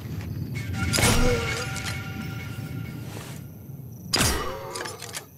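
A silenced pistol fires with a muffled thump.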